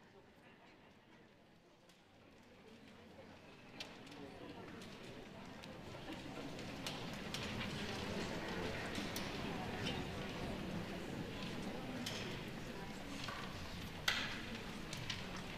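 A concert band plays, swelling gradually louder in a large hall.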